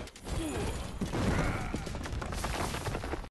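An explosion booms with a rumble.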